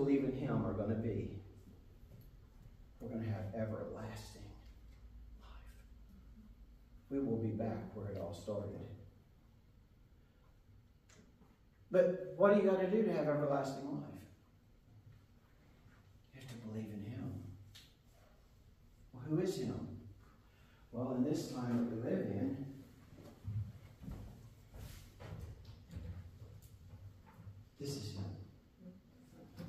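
A middle-aged man speaks calmly in bursts with pauses, in a room with a slight echo.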